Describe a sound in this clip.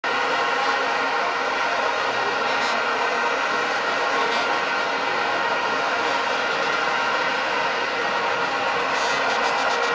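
A large stadium crowd roars, chants and sings steadily all around.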